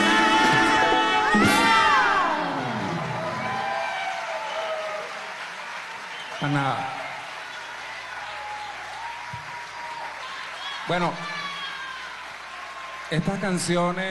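A band plays live in a large hall.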